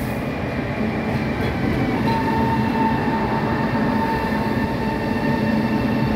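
A train rumbles and rattles past along the tracks.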